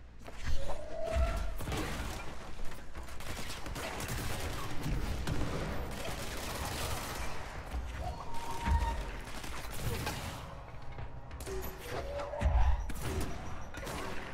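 Explosions boom and debris crashes and scatters.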